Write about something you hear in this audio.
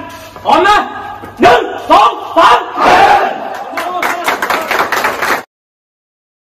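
A group of young men chant and shout together in a huddle.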